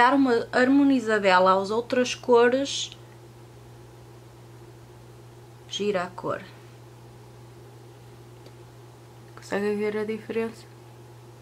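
A woman talks calmly and close up.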